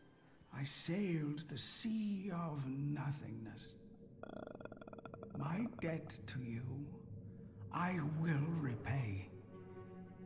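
A man speaks slowly and gravely, close to a microphone.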